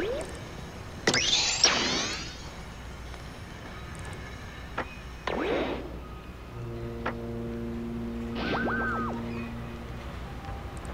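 Short electronic chimes and whooshes play from a game.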